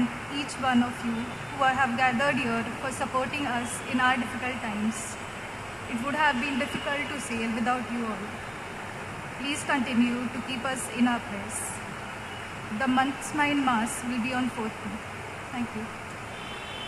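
A woman reads aloud through a microphone in an echoing hall.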